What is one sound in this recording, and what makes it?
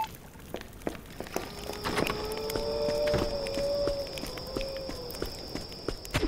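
Quick footsteps patter across the floor.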